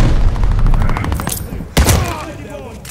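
A grenade explodes with a sharp boom.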